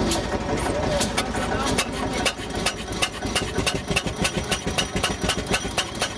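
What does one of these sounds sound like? An old single-cylinder engine starts and chugs with quick, regular knocks.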